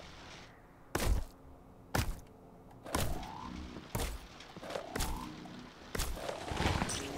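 Short thuds and hits from a video game sound repeatedly.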